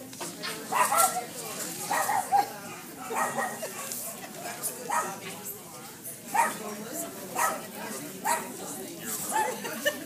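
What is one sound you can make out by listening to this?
Women chat nearby in a large echoing hall.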